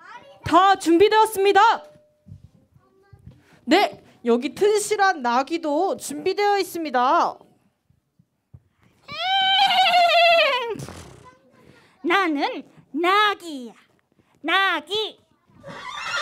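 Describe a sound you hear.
Young women speak with animation through a microphone.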